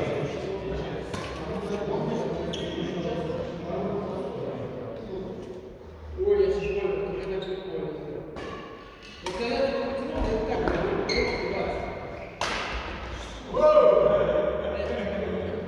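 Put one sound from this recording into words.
Young adults, both men and women, talk casually in a large echoing hall.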